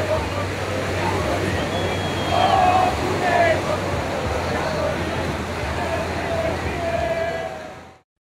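Surf crashes and rushes steadily nearby.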